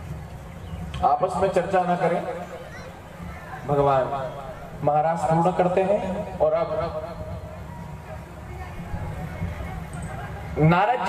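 A young man speaks with animation through a microphone and loudspeakers.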